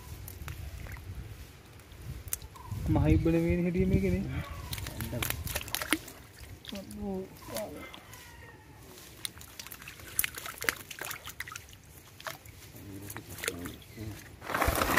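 Hands splash a fishing net about in shallow water.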